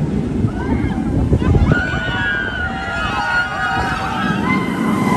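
Riders scream from high on a roller coaster.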